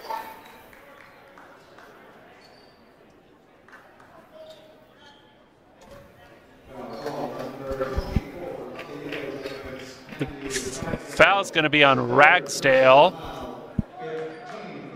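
A crowd murmurs in an echoing gym.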